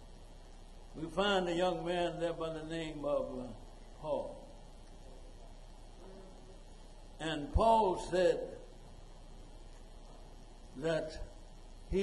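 An elderly man preaches into a microphone in short, emphatic bursts.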